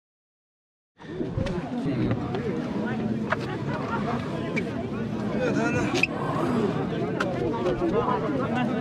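A crowd of men and women talk outdoors.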